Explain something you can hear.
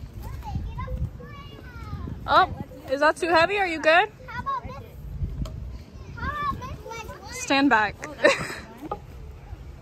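Young children shout and talk excitedly nearby, outdoors.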